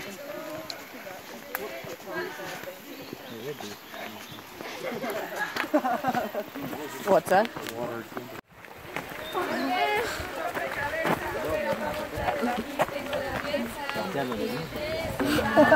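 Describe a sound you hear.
Footsteps crunch on a dirt trail.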